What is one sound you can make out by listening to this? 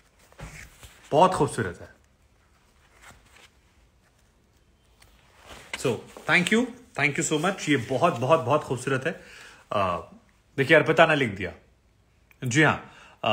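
A young man talks close by, calmly and warmly.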